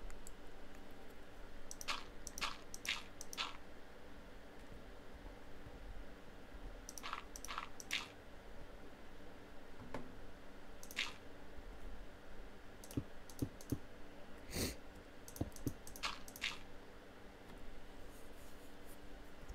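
Footsteps tap on stone.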